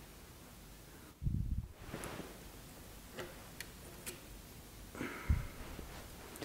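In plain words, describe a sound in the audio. A metal machine lever clunks.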